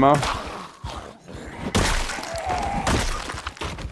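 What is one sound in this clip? A baseball bat thuds against a body.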